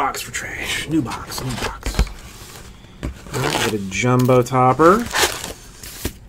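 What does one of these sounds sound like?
A cardboard box rustles and scrapes as hands open it.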